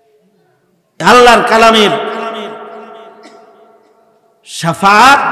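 A man chants loudly into a microphone, heard through loudspeakers with a long echo.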